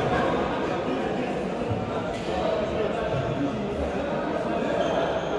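Sneakers squeak and thud on a hard floor.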